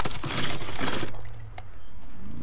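Plastic knocks as a hand lifts the lid of a storage bin.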